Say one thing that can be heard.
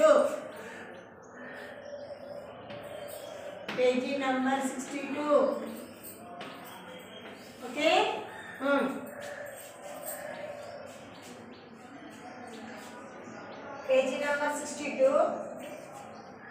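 A woman speaks clearly and calmly nearby.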